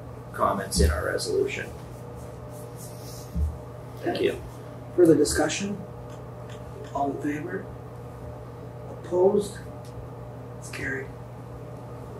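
A man speaks briefly and calmly into a microphone, with short pauses between phrases.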